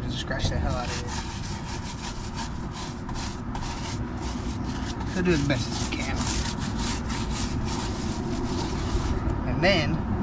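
A stiff-bristled brush scrubs a wet rubber tire.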